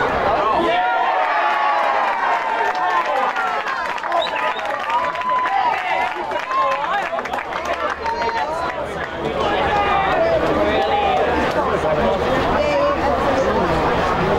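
Young men shout and cheer with excitement outdoors.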